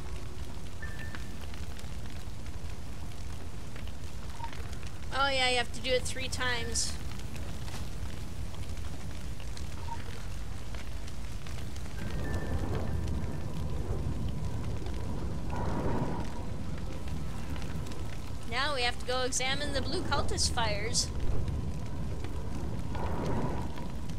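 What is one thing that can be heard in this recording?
A large bonfire crackles and roars.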